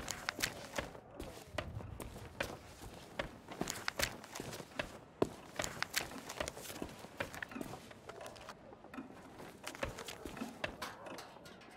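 Paper pages turn and rustle.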